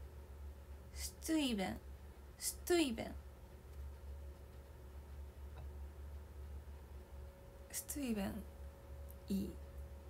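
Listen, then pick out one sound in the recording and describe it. A young woman speaks softly in short bursts, close to the microphone.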